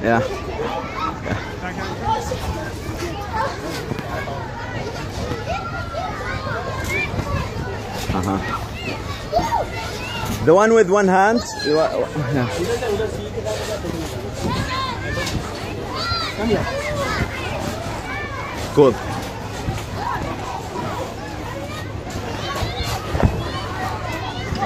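A child lands with soft thumps on a padded mat.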